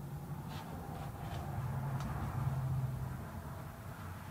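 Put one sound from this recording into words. A sanding block rubs back and forth over wood.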